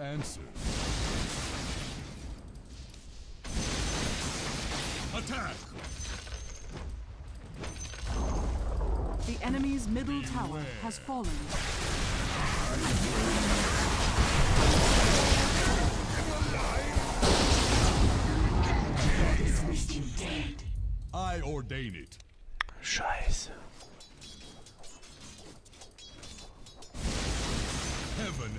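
Magic blasts and clashing weapons crackle during a fight.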